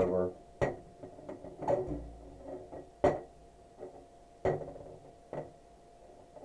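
Small plastic toy figures tap and knock against a toy ring.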